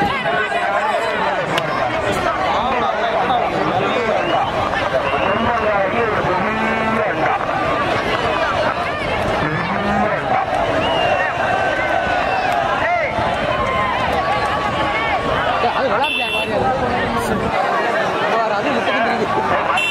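A large crowd shouts and cheers loudly outdoors.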